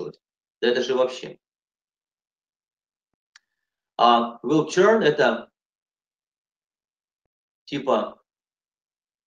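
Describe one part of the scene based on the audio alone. A middle-aged man speaks calmly in short phrases over an online call.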